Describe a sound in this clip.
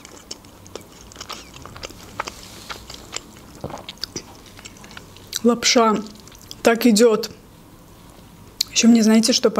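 A fork scrapes and clinks inside a plastic cup.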